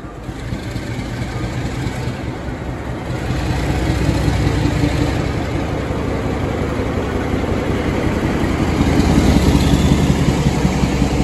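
A diesel locomotive engine rumbles loudly as it passes close by, growing louder.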